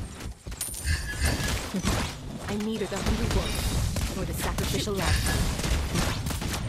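Game sound effects of spells and attacks burst and clash.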